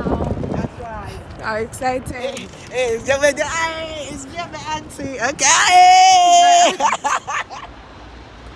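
A woman talks with animation and laughs close by.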